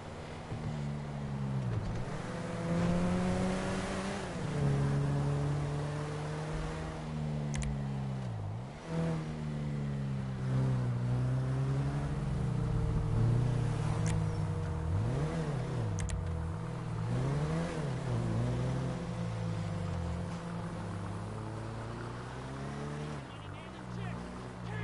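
A car engine hums and revs up and down as gears shift.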